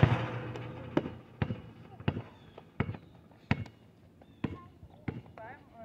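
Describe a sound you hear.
A basketball bounces repeatedly on hard pavement.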